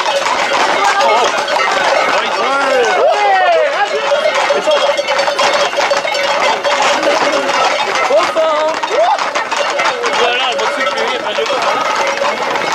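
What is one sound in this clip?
Horse hooves clatter on a paved road.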